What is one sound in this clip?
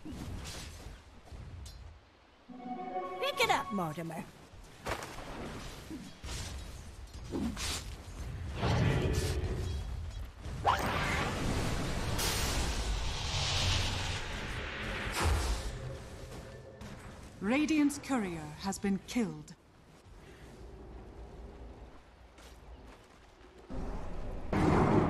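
Game weapons clash and thud in quick bursts.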